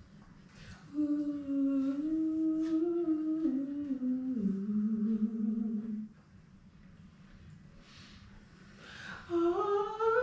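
A woman sings a long, sliding melody close to a microphone.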